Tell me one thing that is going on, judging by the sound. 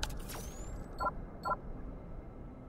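A magic spell crackles and chimes briefly.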